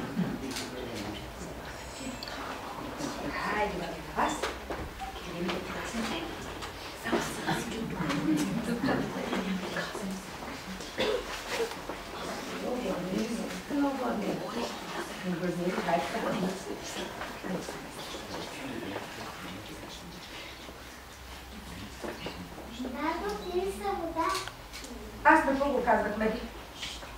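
A woman talks gently to small children.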